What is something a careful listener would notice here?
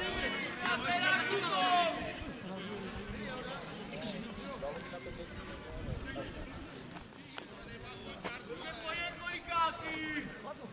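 Men shout to each other from a distance on an open pitch outdoors.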